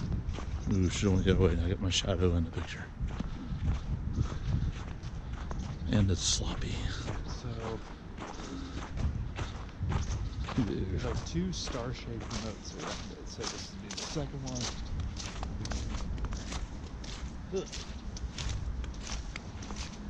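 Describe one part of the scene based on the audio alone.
Footsteps crunch steadily on snow close by.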